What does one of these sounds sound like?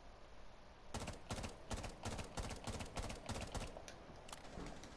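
A rifle fires a quick series of shots.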